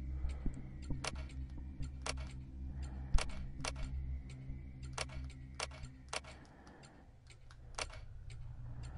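Keypad buttons click one after another as they are pressed.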